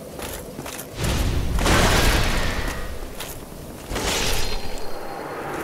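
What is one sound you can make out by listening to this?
Heavy thuds and bursts of game sound effects ring out.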